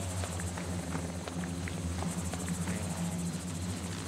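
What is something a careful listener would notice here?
Leaves rustle as someone pushes through bushes.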